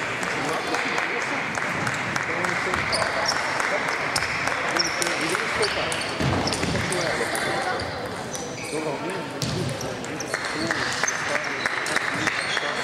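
A crowd murmurs softly throughout.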